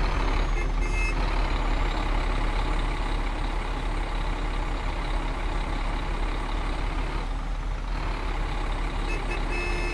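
A heavy bus engine rumbles low and steady.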